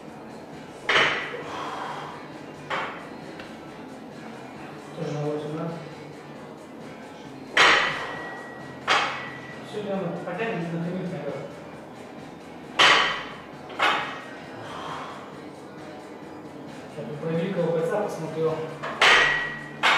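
A heavy barbell clanks down onto the floor.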